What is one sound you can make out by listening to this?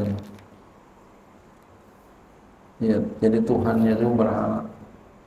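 An elderly man preaches calmly into a microphone, in a reverberant hall.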